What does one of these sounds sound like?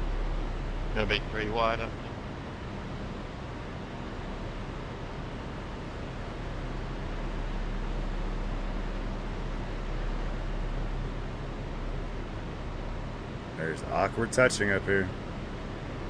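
A man speaks briefly into a headset microphone.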